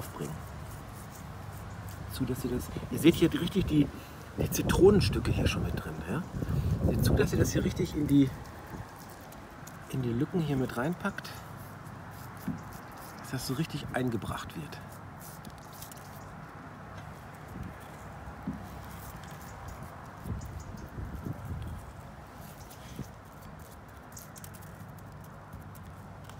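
Coarse salt crystals patter softly onto raw fish.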